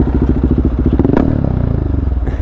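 A motorcycle engine revs briefly.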